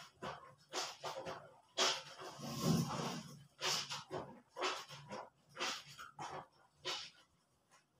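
Wet clothes splash and slosh in a basin of water.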